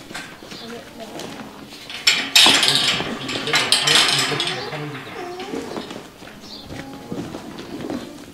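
Hooves shuffle on a hard floor.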